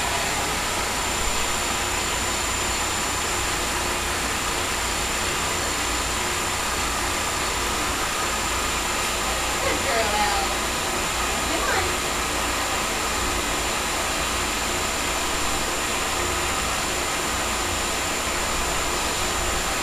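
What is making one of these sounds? Water jets churn and bubble in a tank.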